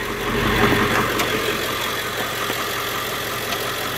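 A car's hood creaks open.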